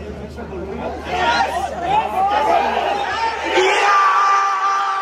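A crowd of fans roars and cheers loudly nearby.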